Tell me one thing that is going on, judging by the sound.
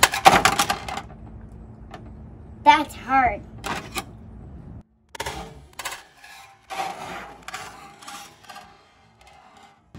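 Plastic toy cars clatter and crash against a toy track.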